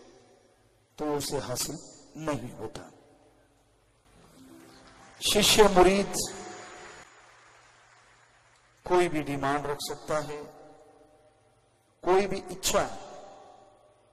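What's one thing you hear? A man speaks calmly into a microphone in bursts, with short pauses, in a reverberant room.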